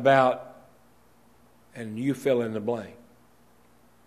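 An older man speaks slowly and deliberately into a microphone.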